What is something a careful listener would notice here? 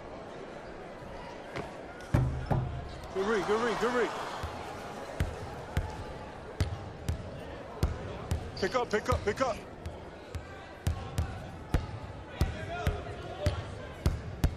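A basketball bounces on a hardwood floor with sharp, echoing thumps.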